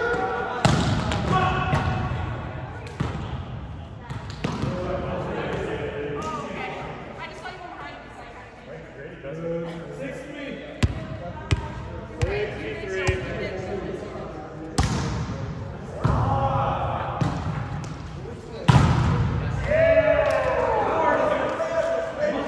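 Young men and women talk and call out in a large echoing gym.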